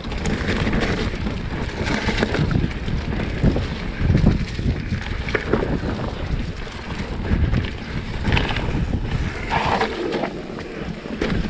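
Wind rushes past a microphone.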